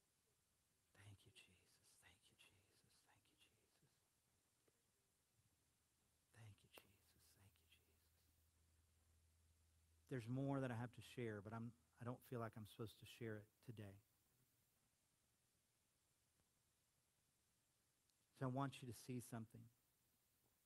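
A middle-aged man speaks calmly through a microphone in a large hall, with long pauses.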